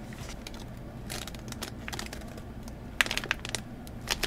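Plastic packaging crinkles as it is handled.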